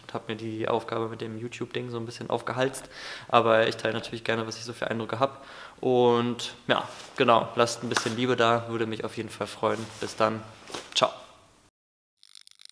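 A young man talks calmly and close to the microphone.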